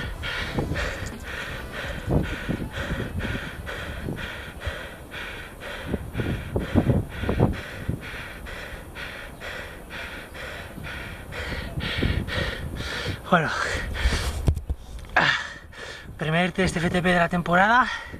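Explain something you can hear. A man breathes heavily and pants close to the microphone.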